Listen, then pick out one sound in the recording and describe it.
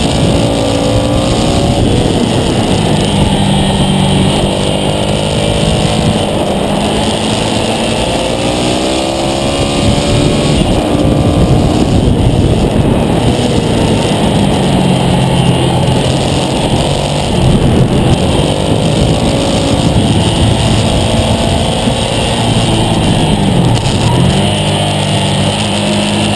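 Wind rushes hard past at high speed.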